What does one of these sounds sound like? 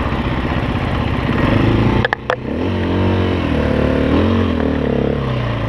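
A dirt bike engine roars up close, briefly cutting out as it shifts gear.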